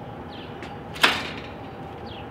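A metal gate latch clicks.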